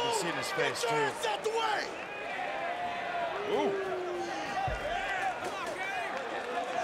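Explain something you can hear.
A large crowd shouts and cheers loudly in an echoing arena.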